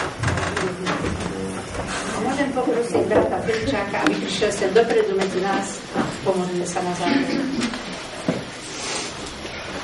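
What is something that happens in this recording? A group of people talk and murmur in a room with a light echo.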